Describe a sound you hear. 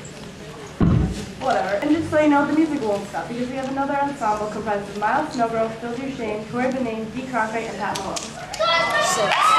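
A young woman speaks through a microphone in a hall.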